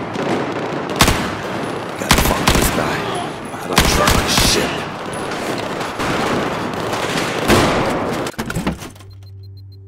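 Gunshots fire in rapid bursts with echoing reports.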